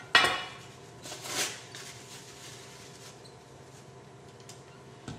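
A paper tissue rustles.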